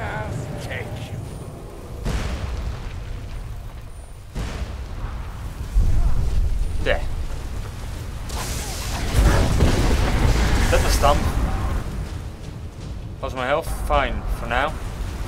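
Flames roar and crackle from a fire spell.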